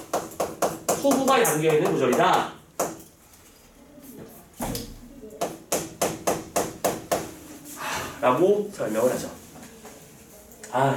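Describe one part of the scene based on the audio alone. A man speaks calmly through a mask, close by.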